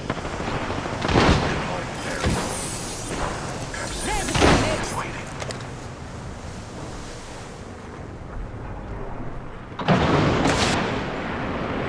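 Gunfire bursts out loudly in sharp volleys.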